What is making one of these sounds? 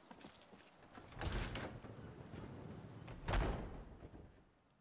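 A heavy wooden door creaks open and thuds.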